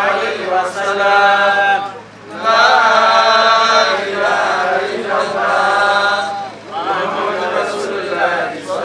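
A man chants through a microphone in long, drawn-out phrases.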